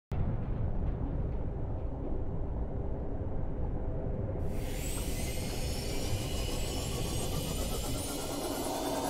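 A submarine's engine hums low and steady underwater.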